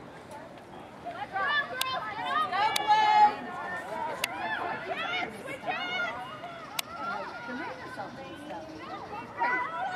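Girls and women shout and call out across an open field outdoors.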